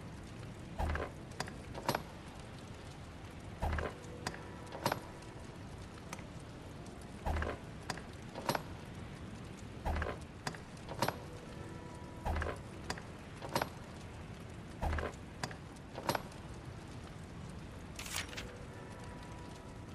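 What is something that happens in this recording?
Short menu clicks and soft beeps sound again and again as selections change.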